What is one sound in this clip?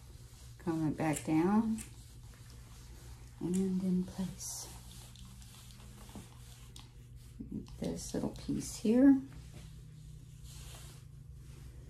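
A comb brushes softly through a dog's fur.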